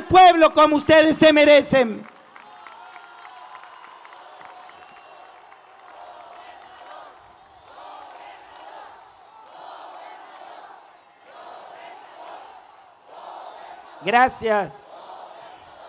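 A man shouts with animation into a microphone over loudspeakers in an open space.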